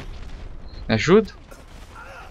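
An explosion bursts loudly.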